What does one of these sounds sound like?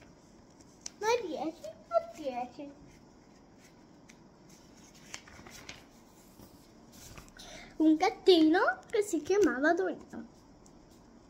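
A young boy speaks close by, calmly.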